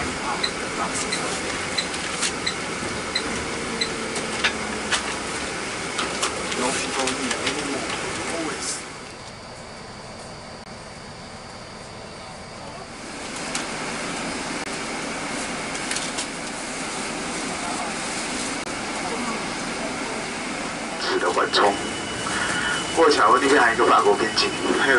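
Road noise rumbles steadily inside a moving vehicle.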